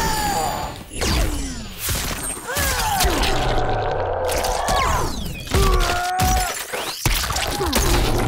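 Ice cracks and shatters loudly.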